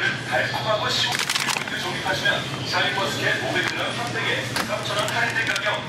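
A plastic bag crinkles as a hand grabs it.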